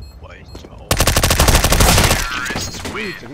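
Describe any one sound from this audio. Rifle gunfire rattles in a loud rapid burst.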